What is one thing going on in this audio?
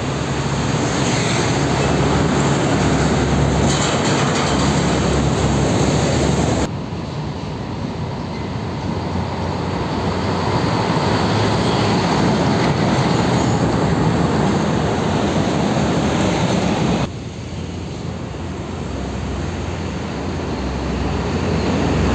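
A diesel container truck passes close by.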